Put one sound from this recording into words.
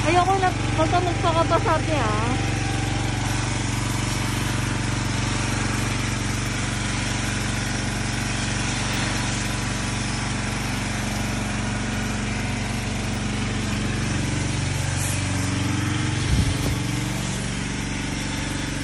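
A pressure washer motor hums steadily.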